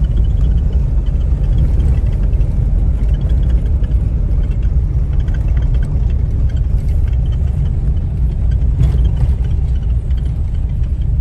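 A car rumbles along a road, heard from inside the car.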